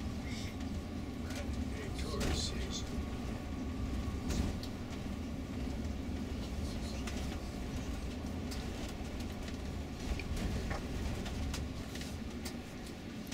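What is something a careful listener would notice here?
The bus rattles and creaks as it drives over the road.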